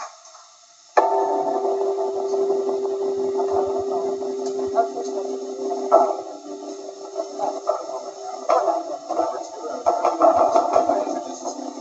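A drum kit is played with steady beats.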